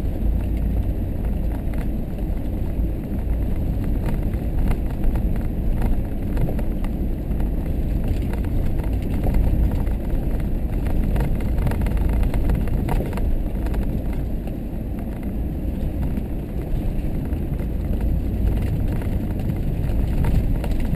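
A vehicle's body rattles and knocks over bumps.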